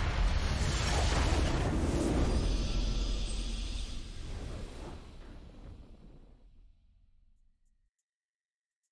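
A triumphant game fanfare booms and slowly fades away.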